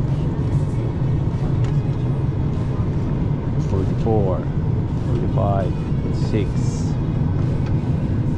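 A steady low engine hum drones through an aircraft cabin.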